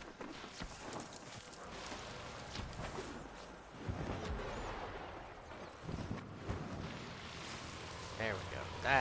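Footsteps thud quickly over dry ground.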